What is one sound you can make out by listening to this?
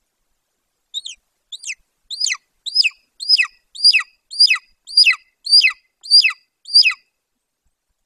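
A large bird of prey calls close by with a series of high, piercing yelps that grow louder and quicker.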